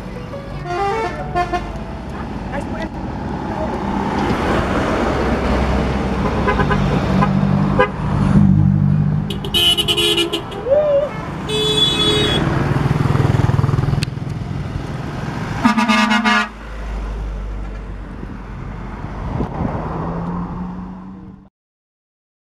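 Heavy vehicle engines rumble as they drive past.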